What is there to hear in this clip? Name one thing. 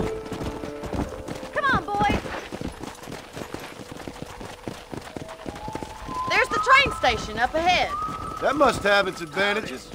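Horse hooves thud on dry dirt at a trot.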